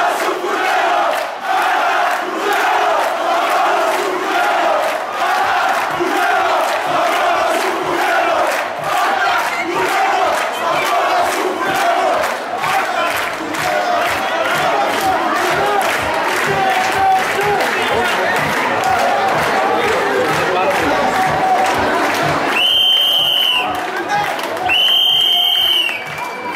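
A large crowd chants loudly in unison outdoors.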